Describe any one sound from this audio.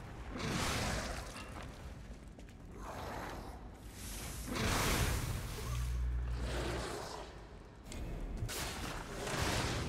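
Game weapons clash and strike with heavy impacts.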